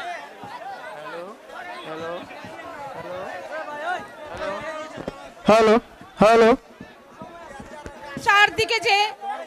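A woman sings with feeling through a loudspeaker, loud and echoing outdoors.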